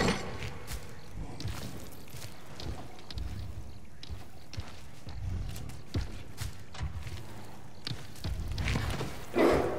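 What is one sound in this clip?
Footsteps tap softly on stone stairs.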